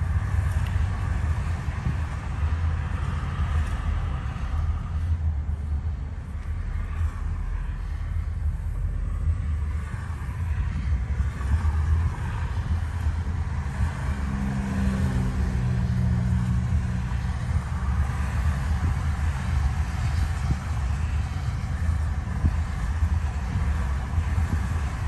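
A car's engine and tyres rumble steadily on a highway.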